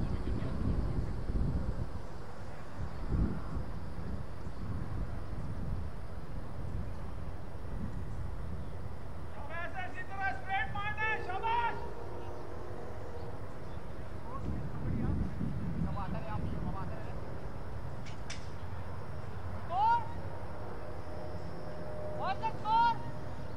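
Wind rumbles across an open field outdoors.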